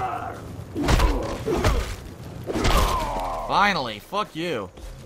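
A burst of flame whooshes and roars close by.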